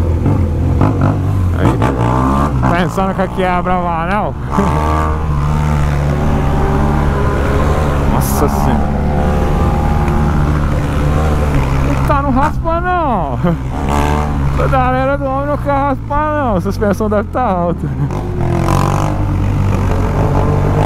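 A motorcycle engine rumbles steadily at close range.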